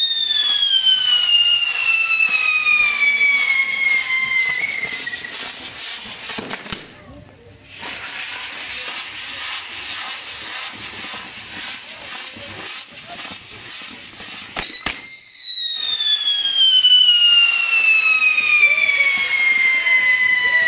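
A spinning firework whistles, its pitch falling slowly.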